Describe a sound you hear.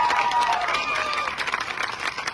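Spectators cheer and whistle.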